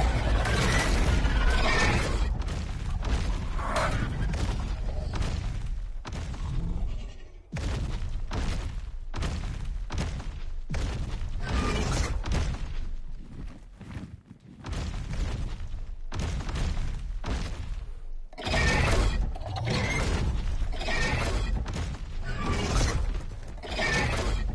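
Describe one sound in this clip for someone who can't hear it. A large creature's heavy footsteps thud on the ground.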